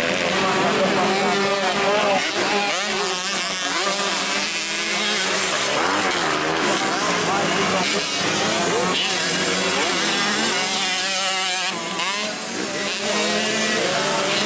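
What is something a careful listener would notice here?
A dirt bike races on a dirt track at full throttle, its engine revs rising and falling.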